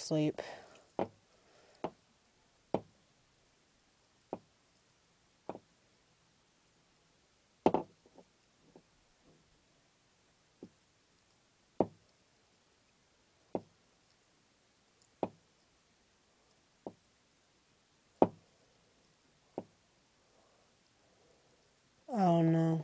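A young woman sings quietly close by.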